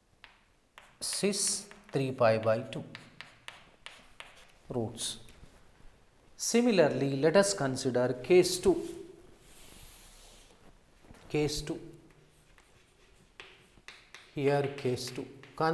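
A man lectures calmly, close to a microphone.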